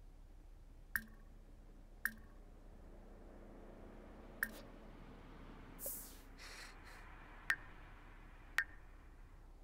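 Short game interface clicks sound several times.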